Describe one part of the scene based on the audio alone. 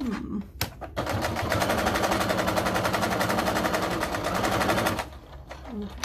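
A sewing machine whirs rapidly as it stitches.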